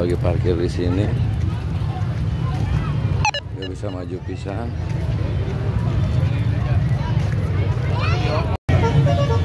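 A crowd of men and women chatters and shouts outdoors nearby.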